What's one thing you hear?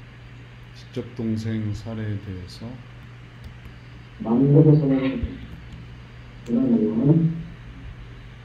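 A man speaks calmly into a microphone in short phrases, heard through an online call.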